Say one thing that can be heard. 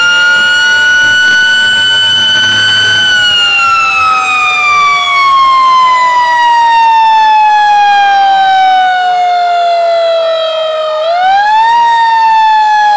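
A fire truck siren wails loudly close by, slowly falling and then rising again.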